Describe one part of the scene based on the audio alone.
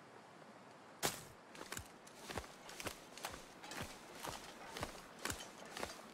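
Footsteps crunch on snow and ice at a steady walking pace.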